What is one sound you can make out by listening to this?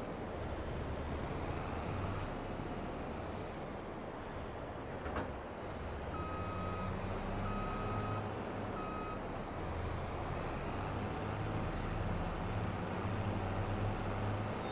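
A combine harvester engine rumbles steadily.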